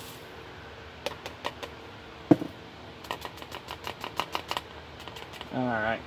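Glassware clinks and taps.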